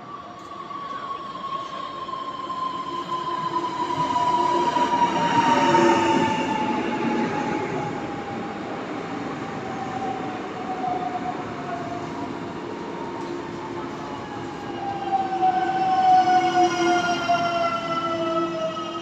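Train wheels rumble and squeal on the rails.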